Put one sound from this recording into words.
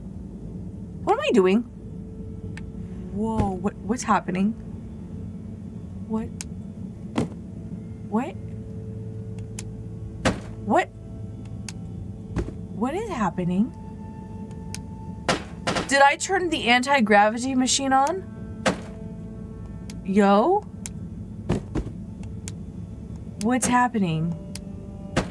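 A young woman speaks animatedly into a microphone in short bursts.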